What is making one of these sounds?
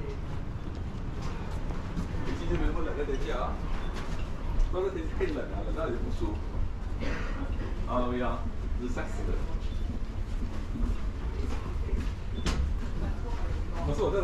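Footsteps tread along a hollow metal walkway.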